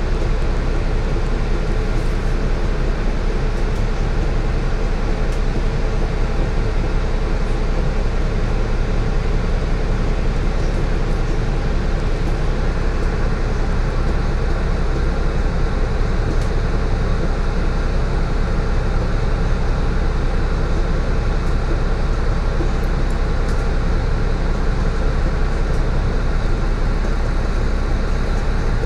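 The bus body rattles softly as it rides.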